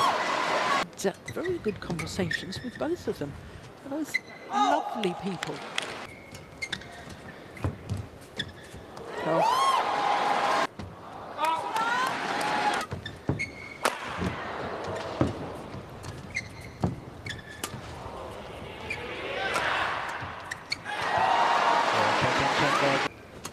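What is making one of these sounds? A shuttlecock is struck sharply by rackets back and forth.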